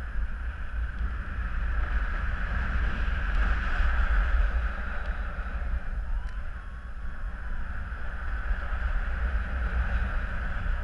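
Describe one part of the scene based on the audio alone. Strong wind rushes and buffets past, outdoors in the open air.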